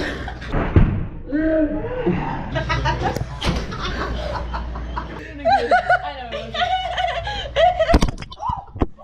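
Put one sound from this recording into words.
Young women laugh and shriek close by.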